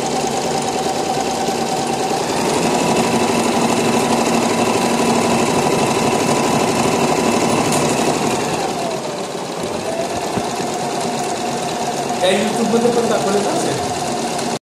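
A sewing machine whirs steadily as it stitches, its motor speed rising and dipping.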